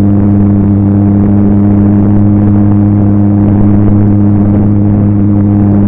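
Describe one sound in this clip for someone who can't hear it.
Wind rushes past the aircraft.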